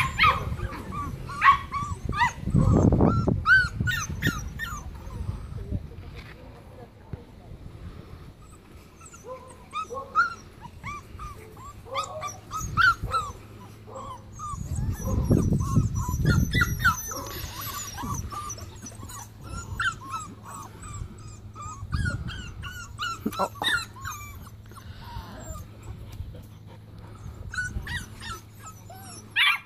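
Puppies whine and yelp in high, squeaky voices.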